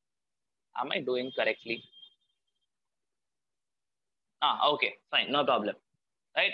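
A young man speaks calmly and explains, close to a microphone, with pauses between phrases.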